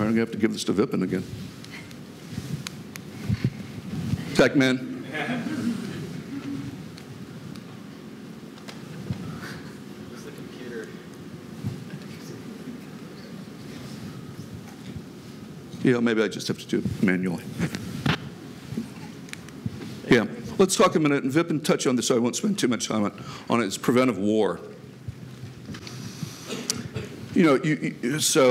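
A man speaks to an audience through a microphone in a large hall.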